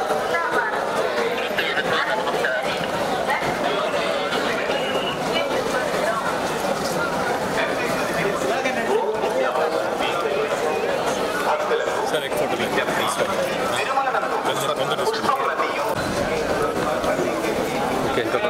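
A crowd of people chatters and murmurs nearby outdoors.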